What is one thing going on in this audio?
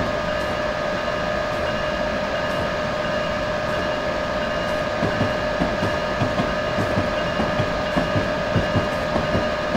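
A train's electric motor hums steadily.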